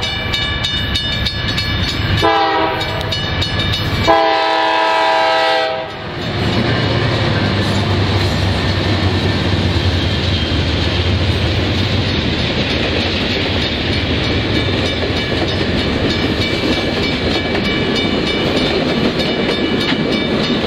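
Train wheels clatter and rumble steadily over the rails.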